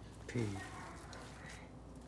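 Hands squish and mix soft mashed food in a metal bowl.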